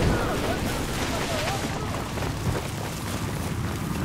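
An explosion booms and rumbles.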